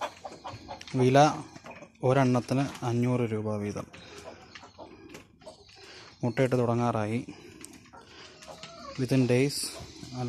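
Chickens peck at food with quick light taps.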